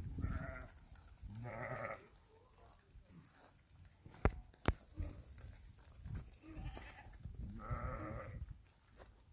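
Sheep bleat loudly close by.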